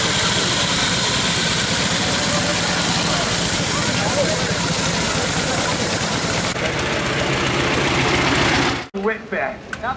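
An old motor engine chugs and rattles loudly.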